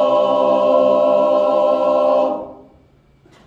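A men's choir sings a held chord in harmony, then stops.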